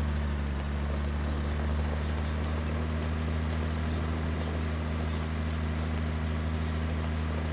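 A tractor engine rumbles steadily as it drives.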